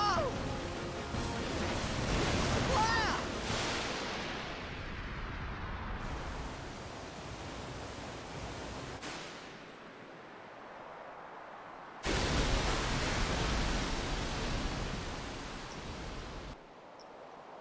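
Water rushes and roars loudly.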